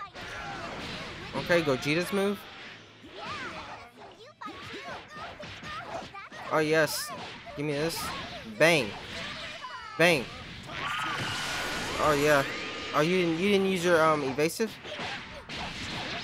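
Punches and energy blasts thud and crackle.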